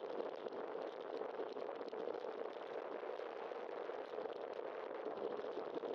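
Wind rushes steadily past a moving bicycle.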